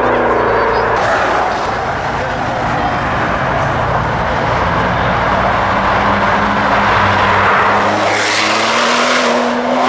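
A second sports car engine growls loudly as it drives up close and speeds off.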